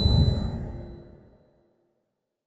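A deep musical chime rings out and slowly fades away.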